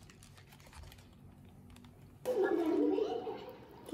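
A paper wrapper crinkles.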